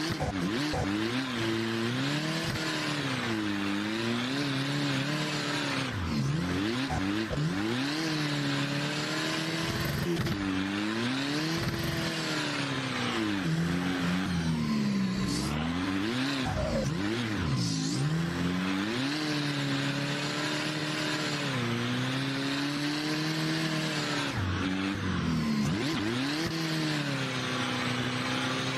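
A car engine revs hard, rising and falling again and again.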